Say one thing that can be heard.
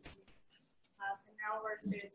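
An older woman speaks into a microphone.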